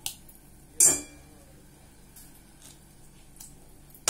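A wooden spatula scrapes and knocks against a steel pot.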